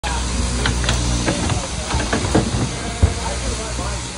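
Sheep hooves scuffle and knock on a wooden floor.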